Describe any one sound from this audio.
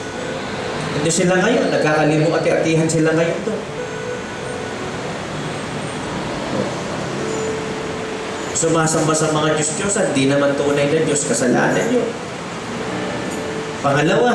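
A man speaks with animation through a microphone in a slightly echoing room.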